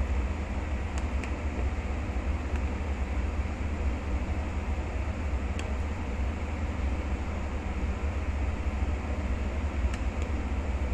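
A metal spoon clinks and scrapes against a pot.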